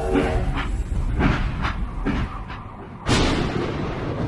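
A machine gun fires several shots.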